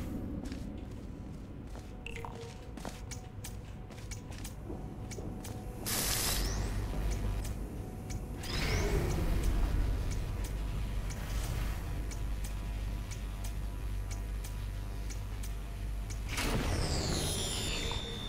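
A laser beam hums.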